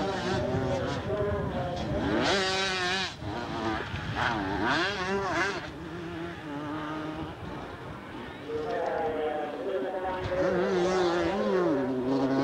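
Motorcycle engines rev and whine up and down, some way off.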